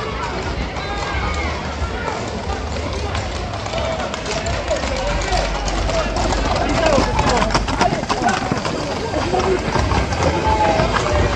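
Horses' hooves clatter on the street as riders pass close by.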